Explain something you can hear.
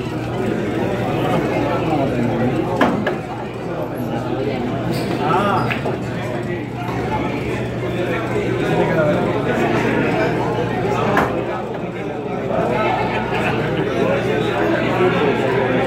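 A crowd of men and women chatters throughout.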